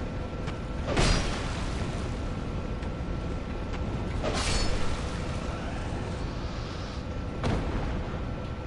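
A sword slashes and strikes an enemy.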